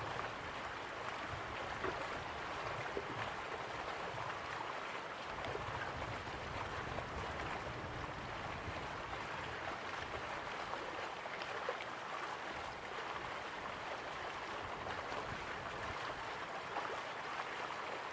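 Waterfalls rush and splash steadily.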